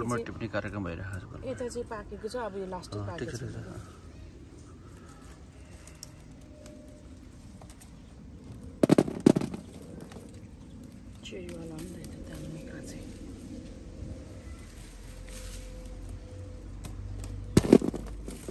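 Tomato plant leaves rustle as fruit is picked by hand.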